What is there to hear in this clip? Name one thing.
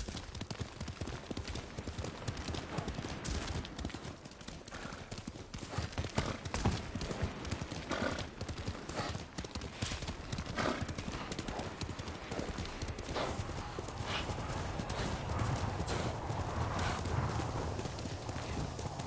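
Hooves clop steadily as a horse gallops along a path.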